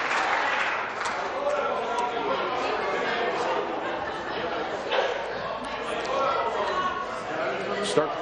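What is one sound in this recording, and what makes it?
A man speaks calmly through a loudspeaker in a large hall.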